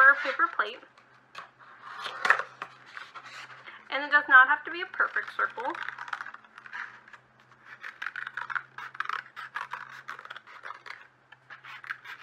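Scissors snip through a paper plate.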